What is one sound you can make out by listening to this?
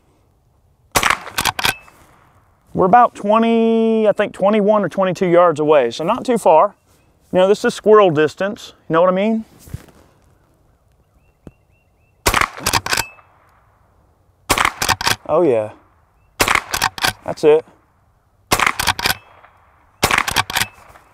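A shotgun fires several quick shots outdoors.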